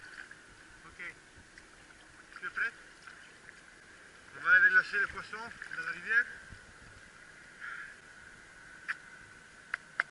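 Water splashes and sloshes around a large fish in the shallows.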